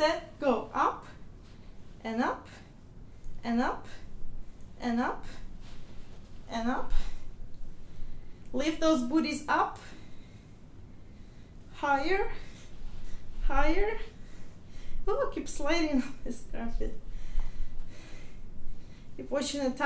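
A young woman talks calmly, close by.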